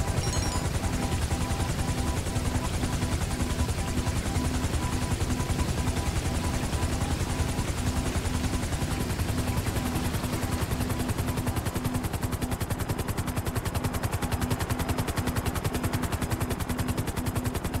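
A helicopter's rotor blades thump rapidly and its engine whines throughout.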